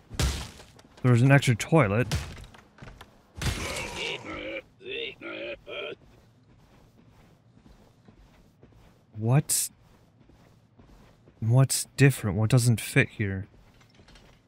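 A young man speaks casually into a close microphone, in short bursts.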